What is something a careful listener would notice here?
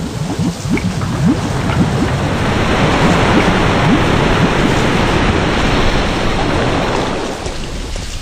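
Steam hisses loudly from a vent and slowly dies away.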